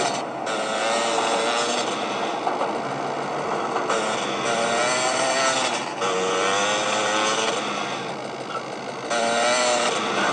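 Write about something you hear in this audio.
A motorbike engine revs and drones through a small speaker.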